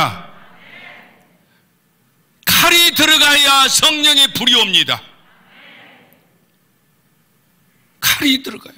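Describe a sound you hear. An elderly man speaks with animation into a microphone, heard through a loudspeaker in a large echoing hall.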